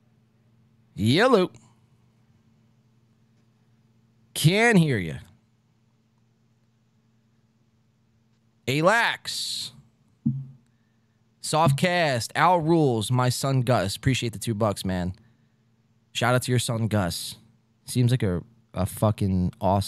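A man speaks closely into a microphone, in short bursts with pauses.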